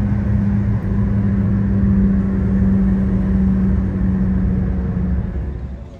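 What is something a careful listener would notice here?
A car engine hums steadily at highway speed.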